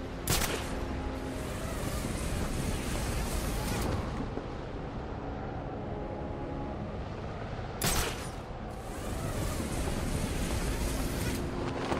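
Wind rushes loudly past a gliding figure.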